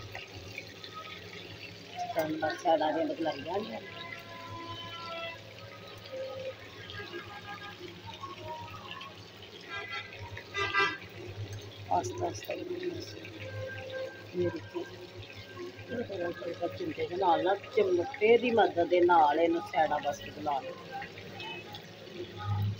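Oil sizzles and bubbles in a frying pan.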